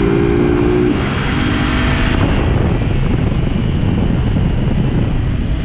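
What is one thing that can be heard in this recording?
A motorcycle engine hums and revs close by.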